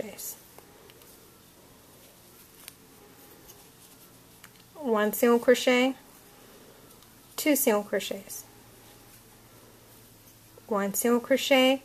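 Yarn rustles softly as a crochet hook pulls it through stitches.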